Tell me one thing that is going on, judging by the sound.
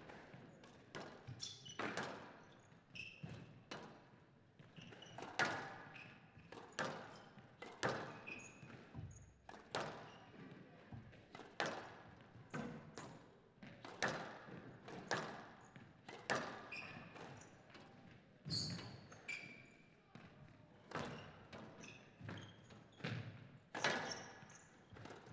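Shoes squeak and thud on a court floor.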